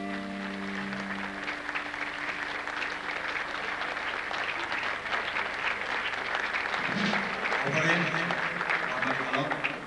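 A band plays music.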